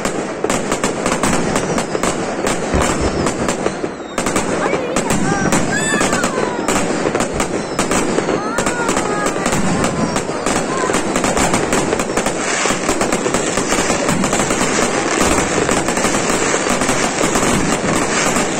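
Fireworks burst with deep booms.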